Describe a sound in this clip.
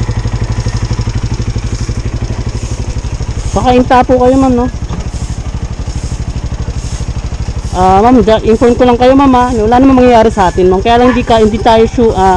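A motorcycle engine idles with a steady low putter.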